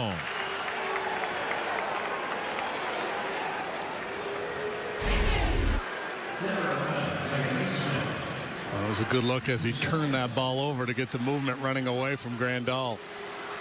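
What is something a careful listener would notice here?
A large crowd murmurs steadily outdoors.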